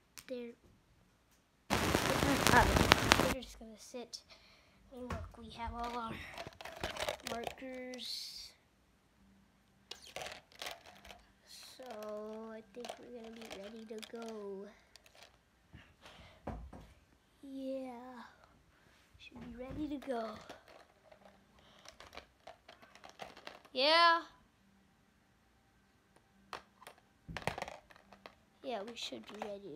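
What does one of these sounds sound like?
A boy talks close to a phone microphone, in short bursts.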